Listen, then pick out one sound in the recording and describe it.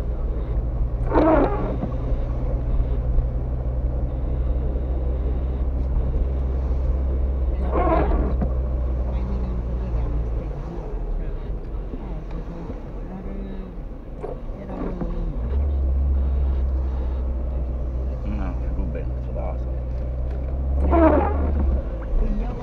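A windscreen wiper squeaks across the wet glass now and then.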